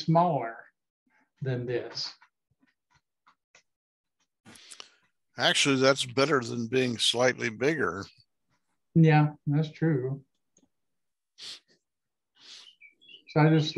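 A man talks calmly over an online call, in short bursts with pauses.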